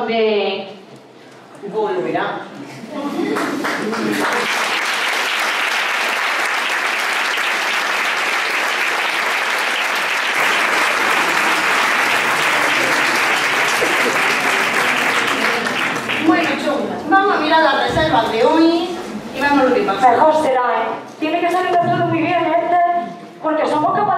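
A young woman speaks clearly and with expression on a stage in a hall.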